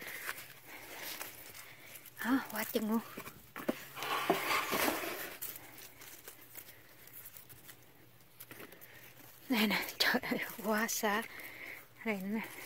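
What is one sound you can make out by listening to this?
Tomato plants rustle as fruit is pulled from the stems.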